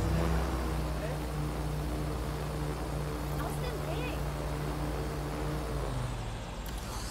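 A drone's propellers hum steadily, then wind down.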